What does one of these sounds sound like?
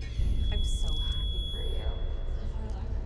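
A young woman sobs in distress.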